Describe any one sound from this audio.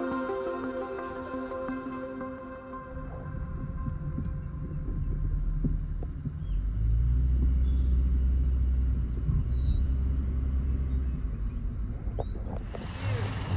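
A car engine hums low as the car drives along a road.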